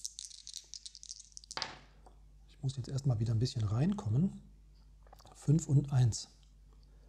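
Dice roll and clatter on a soft mat.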